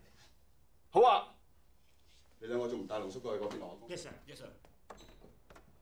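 A man speaks sharply with a raised voice.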